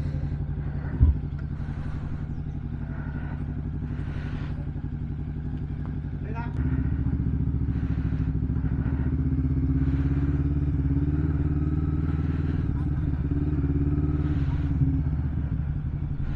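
A motorcycle engine idles with a steady low rumble, then revs and pulls away at a low speed.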